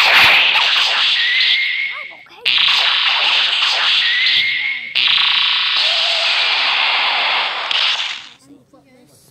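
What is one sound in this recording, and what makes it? Energy blasts roar and crackle loudly in bursts.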